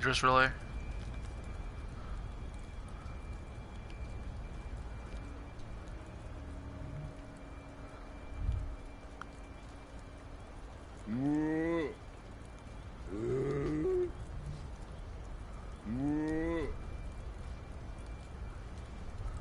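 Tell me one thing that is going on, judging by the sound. Footsteps rustle softly through dry leaves and grass.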